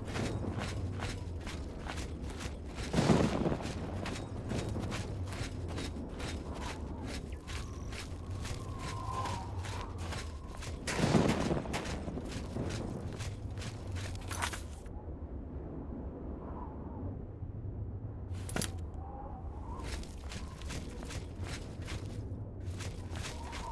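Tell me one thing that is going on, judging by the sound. Footsteps crunch steadily over snow and stone.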